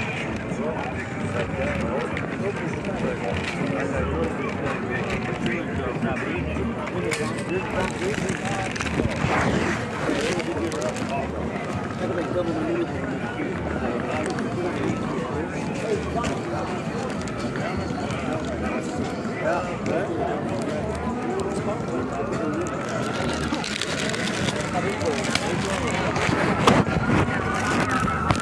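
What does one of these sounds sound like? A crowd of adults talks and chatters outdoors nearby.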